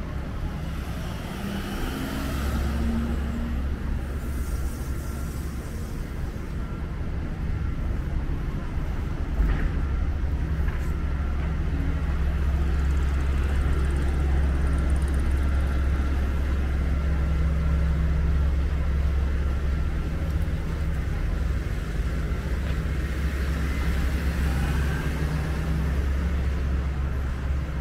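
Traffic hums steadily along a street outdoors.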